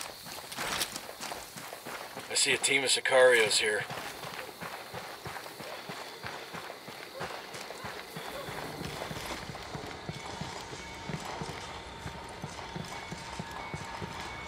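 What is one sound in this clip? Footsteps crunch on gravel and then tap on a hard floor.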